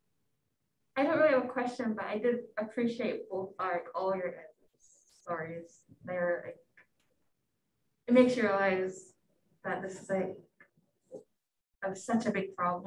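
A young woman speaks into a microphone in a large room.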